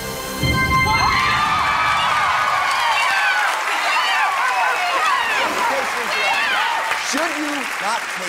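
Women shriek and shout joyfully close by.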